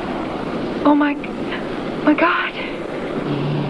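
A woman gasps and cries out in fright.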